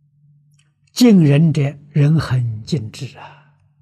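An elderly man speaks calmly and clearly into a microphone.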